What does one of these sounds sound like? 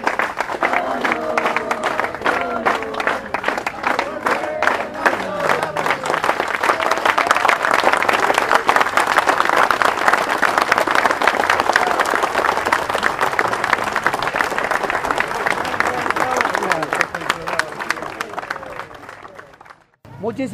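Many hands clap in a fast, steady rhythm.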